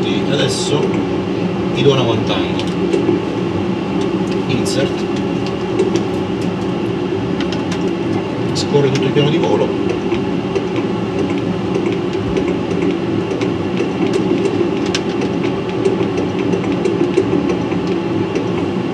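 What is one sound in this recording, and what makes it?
A steady low roar of aircraft engines and air fills a cockpit.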